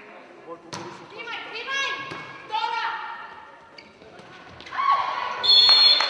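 A volleyball is struck with hard slaps.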